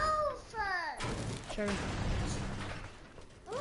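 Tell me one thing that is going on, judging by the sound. A pickaxe strikes a metal garage door with loud clangs.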